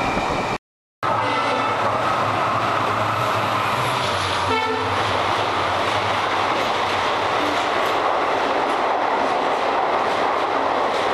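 A train rushes past close by, roaring under an echoing roof.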